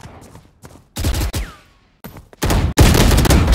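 A rifle fires a rapid burst of loud gunshots.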